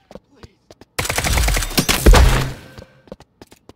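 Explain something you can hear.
Gunfire rattles in a loud burst.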